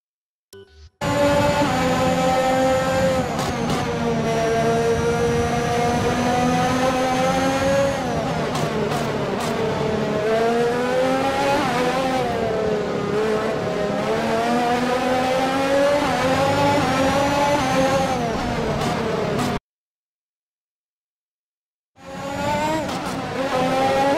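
A racing car engine screams at high revs, rising and falling as it shifts gears.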